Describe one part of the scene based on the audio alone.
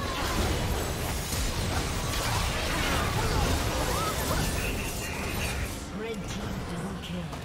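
Spell effects crackle, whoosh and clash in a busy video game battle.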